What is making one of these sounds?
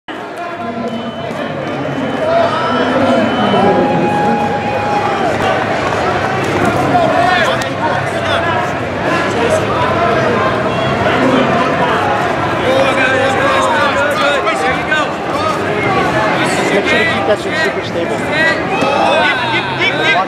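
A large crowd of men and women shouts and cheers in a large echoing hall.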